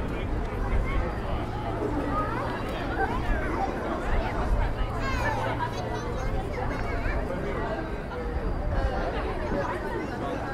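Footsteps shuffle on paving stones.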